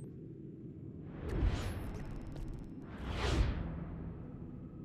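A soft whoosh sweeps past twice.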